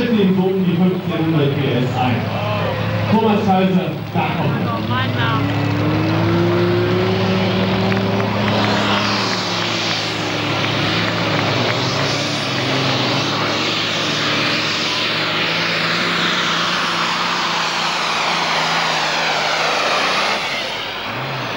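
A tractor engine roars loudly at full power.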